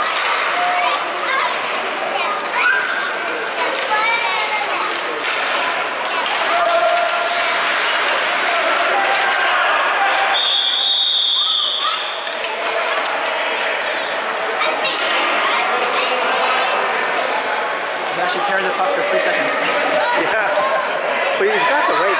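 A crowd of spectators chatters and calls out in an echoing rink.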